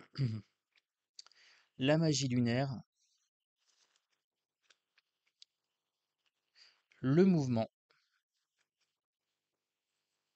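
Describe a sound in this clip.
Playing cards slide and tap softly against each other.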